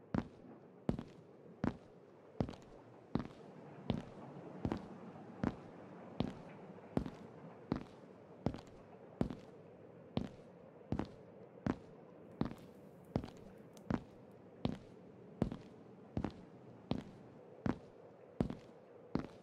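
Footsteps thud steadily on stone in an echoing tunnel.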